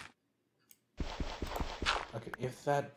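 Gravel crunches as a block is dug away.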